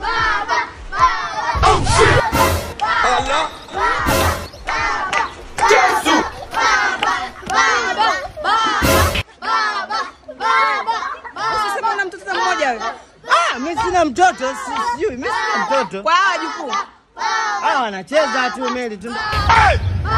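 A young woman argues loudly and with animation close by.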